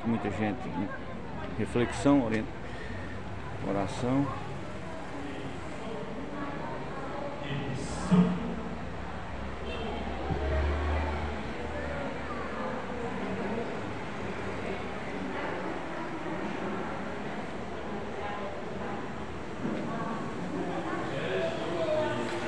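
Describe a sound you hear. Men and women chat quietly in a large echoing hall.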